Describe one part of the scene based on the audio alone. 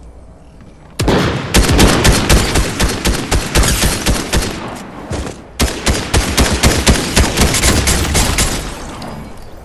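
Rapid gunfire rattles loudly in long bursts.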